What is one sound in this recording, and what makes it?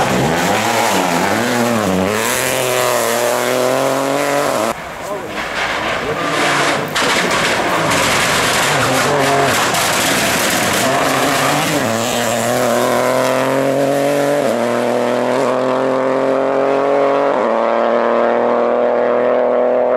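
A rally car engine revs hard and roars past.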